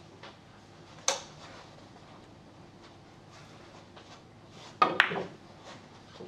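Billiard balls clack sharply against each other.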